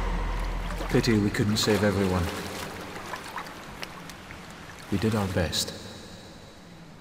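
A young man speaks quietly and sadly.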